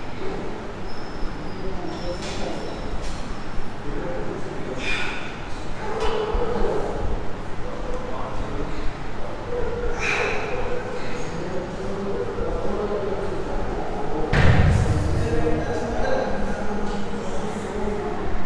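Weight plates on a barbell clink softly as it is lowered and pressed.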